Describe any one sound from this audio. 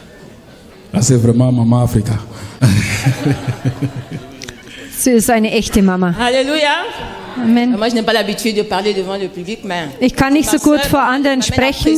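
A man speaks with animation through a loudspeaker in a large echoing hall.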